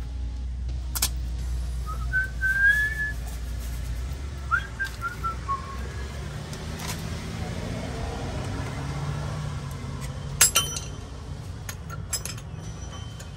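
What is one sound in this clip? Metal tools clink and clank against car parts.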